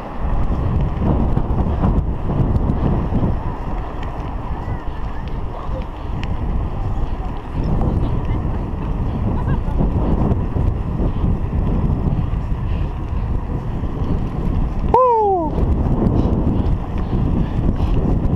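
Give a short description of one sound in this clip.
Wind buffets a microphone on a moving bicycle outdoors.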